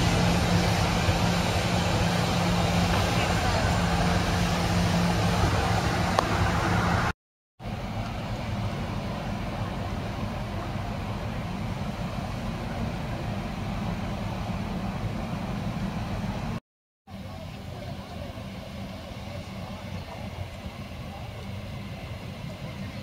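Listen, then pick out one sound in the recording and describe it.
A docked ship's engine hums steadily nearby.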